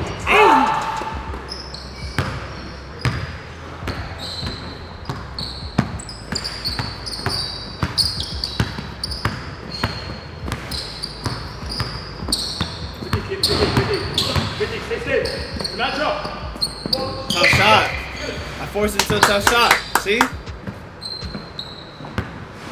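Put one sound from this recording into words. A basketball bounces on a hard court floor, echoing in a large hall.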